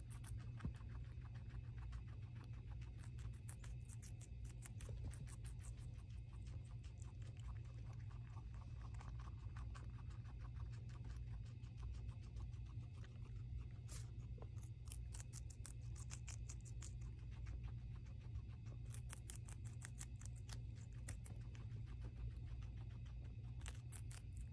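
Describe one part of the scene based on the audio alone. A guinea pig munches crisp vegetables up close with quick crunching bites.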